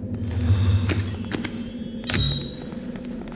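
A bright magical chime sparkles.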